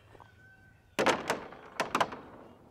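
Feed pellets rattle into a plastic trough.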